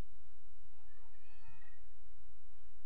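A man calls out briefly across an open field.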